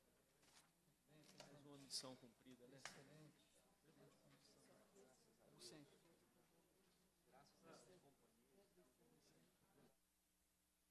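Men talk quietly at a distance.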